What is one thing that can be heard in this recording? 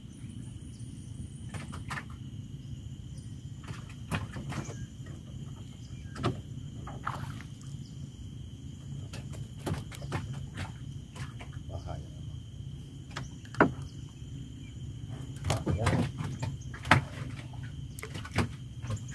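Water splashes along the hull of a moving boat.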